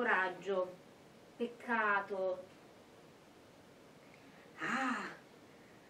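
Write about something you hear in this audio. A young woman speaks expressively close by, reading aloud with pauses.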